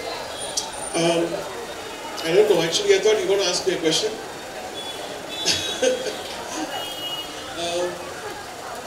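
A woman speaks through a microphone over loudspeakers.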